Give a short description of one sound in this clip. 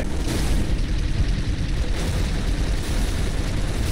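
An aircraft engine roars overhead.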